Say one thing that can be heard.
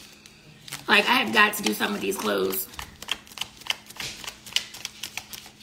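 Plastic packets crinkle and rustle in a young woman's hands.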